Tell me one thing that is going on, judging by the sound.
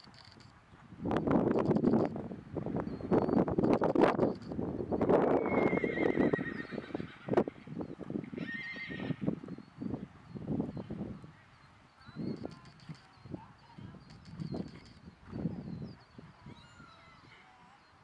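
A horse trots on soft sand with muffled hoofbeats.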